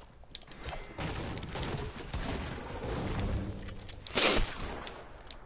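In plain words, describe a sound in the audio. A pickaxe strikes wood with repeated thuds.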